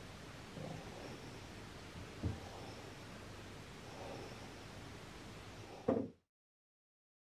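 A dog breathes softly in its sleep.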